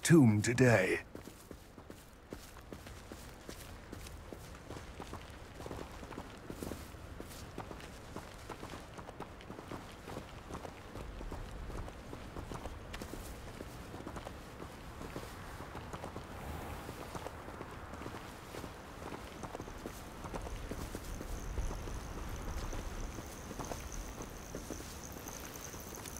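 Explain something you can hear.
Footsteps crunch on a dirt path through grass.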